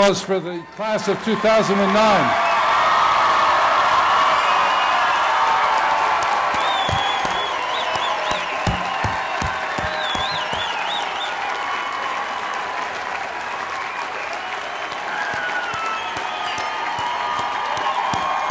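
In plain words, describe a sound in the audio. A large crowd applauds and cheers.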